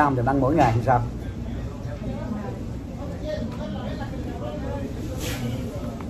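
A paper food wrapper rustles in a man's hands.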